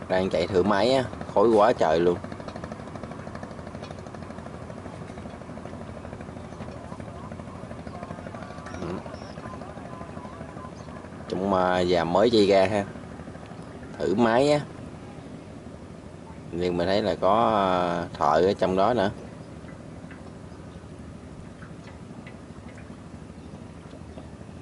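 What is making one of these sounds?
A boat engine chugs steadily over the water.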